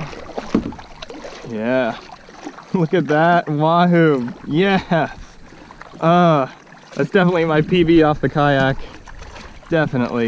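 A fish splashes at the water's surface.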